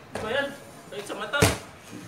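A basketball clangs off a metal rim.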